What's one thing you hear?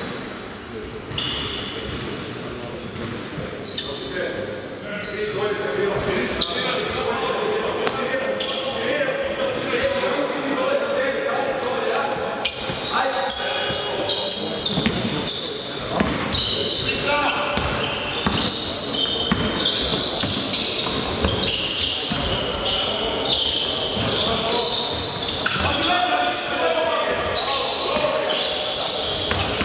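Young men call out loudly across an echoing hall.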